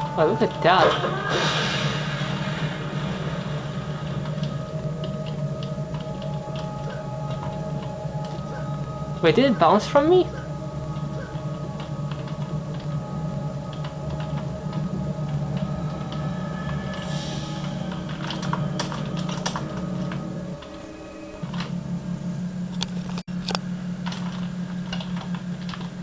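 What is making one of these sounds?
Keyboard keys click rapidly.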